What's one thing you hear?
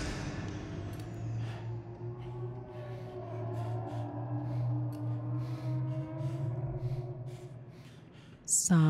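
A young woman talks animatedly through a microphone.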